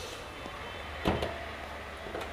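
A car bonnet latch clicks open.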